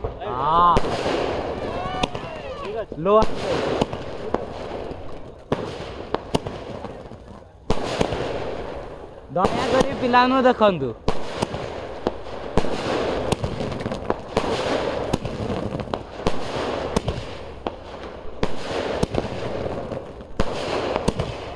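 Firework shells burst overhead with crackling pops.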